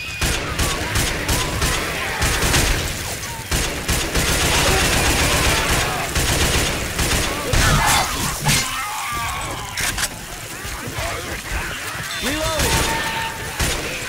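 Fire roars and crackles from explosions.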